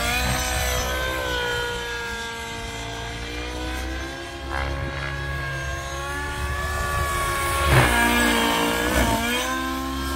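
A small model airplane engine whines high overhead, its pitch slowly rising and falling.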